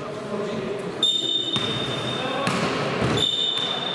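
A referee's whistle blows shrilly twice.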